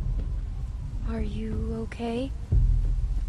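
A young girl speaks softly and nervously.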